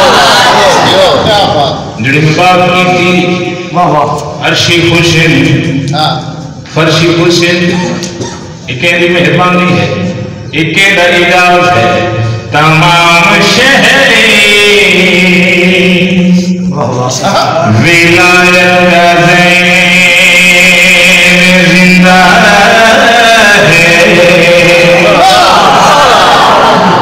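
A man recites with strong feeling into a microphone, heard through a loudspeaker.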